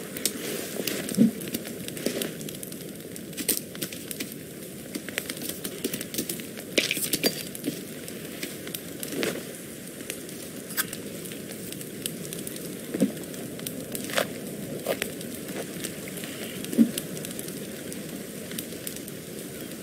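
A small fire crackles.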